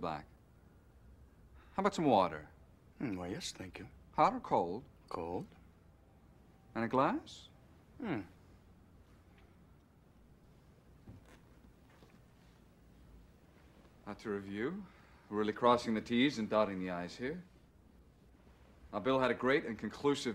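A man speaks calmly and formally close by.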